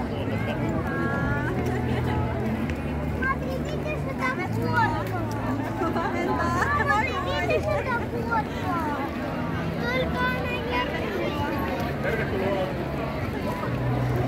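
Women cheer and call out in welcome nearby.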